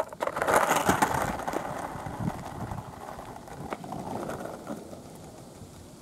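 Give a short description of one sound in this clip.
Skateboard wheels roll and rumble on asphalt, fading into the distance.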